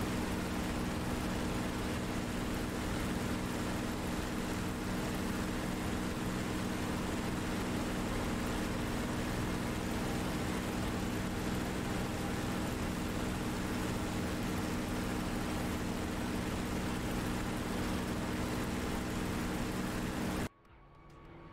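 A propeller plane's engine drones loudly and steadily inside the cockpit.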